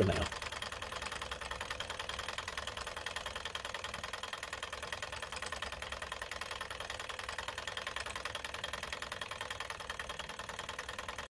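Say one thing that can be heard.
A small engine runs with a fast, steady mechanical ticking.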